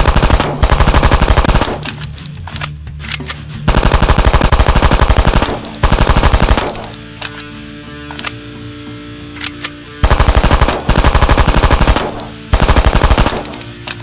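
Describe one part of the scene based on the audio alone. A game gun fires rapid bursts of automatic shots.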